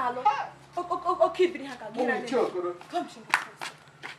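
A young woman shouts angrily nearby.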